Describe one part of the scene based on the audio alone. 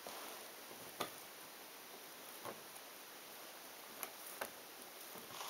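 Jigsaw puzzle pieces click softly as they are set down on a board.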